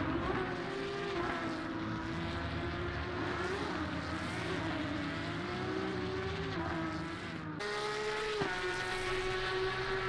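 Racing car engines roar and whine steadily.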